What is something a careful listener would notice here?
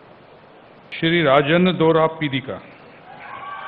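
A man speaks loudly and calmly through a microphone and loudspeakers.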